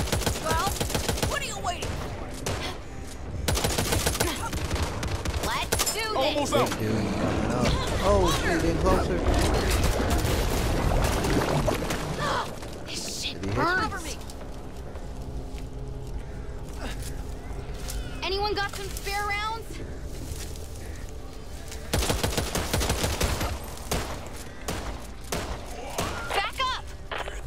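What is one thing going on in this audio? A scoped assault rifle fires rapid shots.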